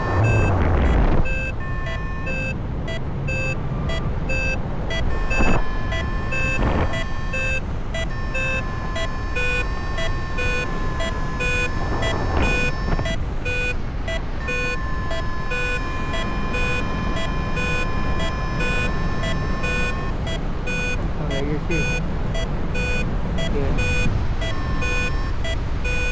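Wind rushes steadily past.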